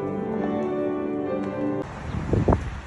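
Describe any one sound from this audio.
A congregation sings in a large echoing church.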